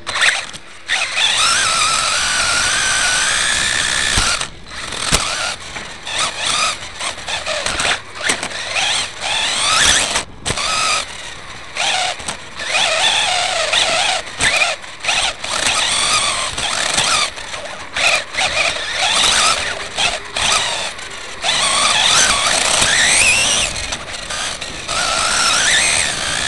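Tyres of a model car scrape and rumble over a track.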